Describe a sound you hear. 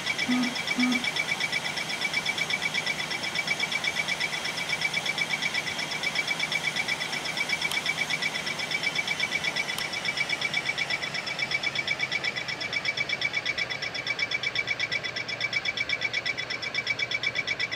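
The twin jet engines of a business jet drone in flight.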